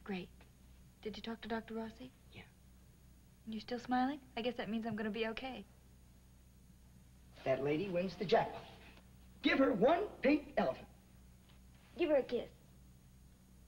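A woman speaks tensely, her voice rising.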